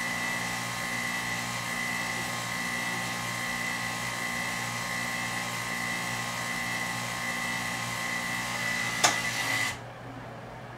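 A small pump hums and whines steadily, then stops.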